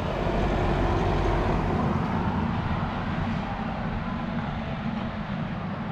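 A car drives away down a narrow street.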